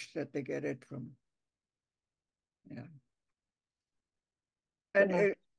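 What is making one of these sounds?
An elderly woman speaks calmly over an online call, in short bursts with pauses.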